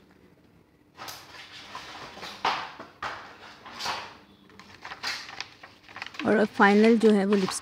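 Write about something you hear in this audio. A cardboard box rustles and scrapes in hands.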